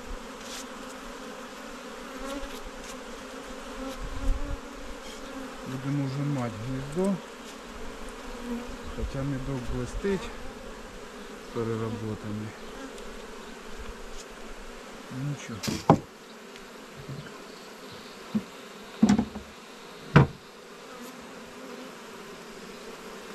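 Bees buzz around an open hive.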